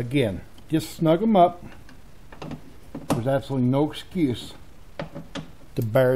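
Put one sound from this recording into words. A hand tool clicks as a bolt is turned.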